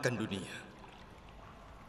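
A man speaks softly close by.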